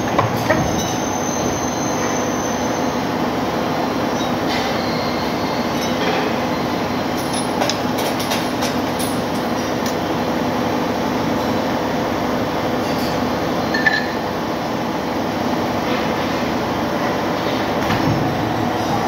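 Metal parts clank and knock against the press.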